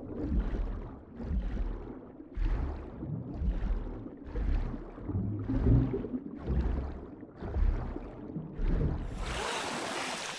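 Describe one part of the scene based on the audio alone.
Muffled water swooshes rhythmically as a swimmer strokes underwater.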